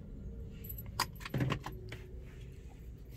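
A button on a car's console clicks.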